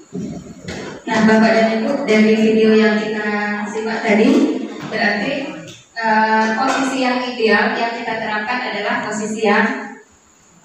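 A woman speaks with animation through a microphone and loudspeaker in an echoing room.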